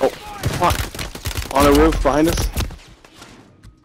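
Gunfire rings out in rapid bursts.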